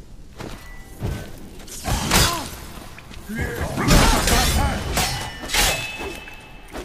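Swords swing and strike with sharp clashing hits.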